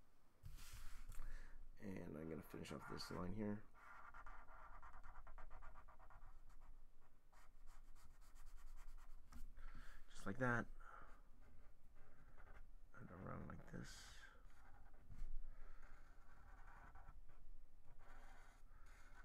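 A marker squeaks and scratches across paper.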